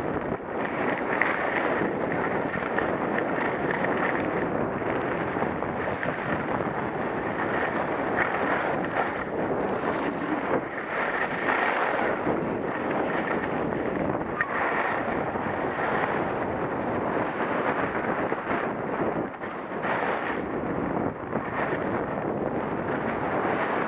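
Skis hiss and scrape over snow at speed.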